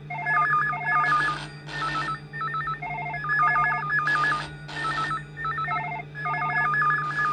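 A telephone gives quick repeated electronic beeps.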